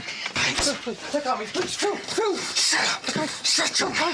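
A young man cries out in distress.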